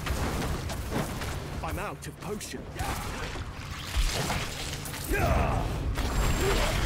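Spell effects crackle and whoosh during a fight.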